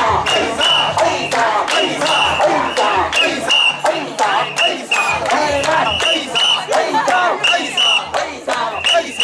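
A crowd of men and women chant loudly and rhythmically outdoors.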